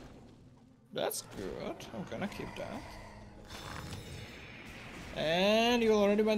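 Magic spells burst and crackle in quick succession.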